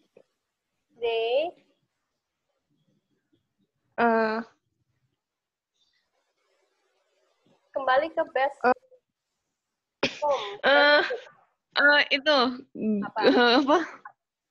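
A woman speaks calmly through an online call, in short phrases with pauses.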